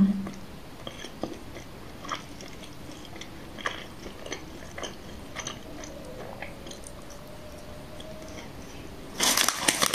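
A young woman crunches a crispy snack close by.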